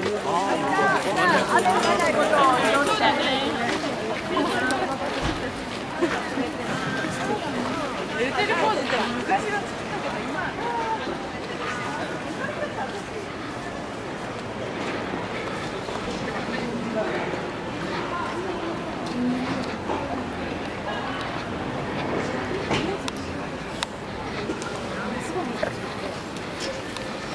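A crowd of people talks outdoors in a busy street.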